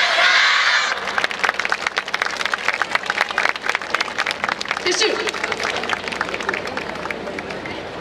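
Many dancers' wooden clappers clack rapidly in rhythm outdoors.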